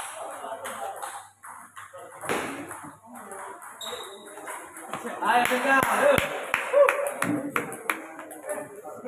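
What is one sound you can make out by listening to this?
A table tennis ball clicks back and forth between paddles and a table.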